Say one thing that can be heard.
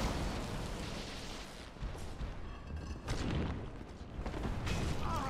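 A monster growls in a game fight.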